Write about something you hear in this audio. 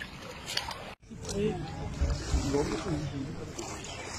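Water laps gently against a rocky shore.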